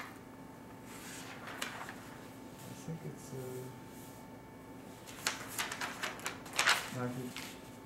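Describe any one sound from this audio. Paper rustles as a sheet is lifted and laid down.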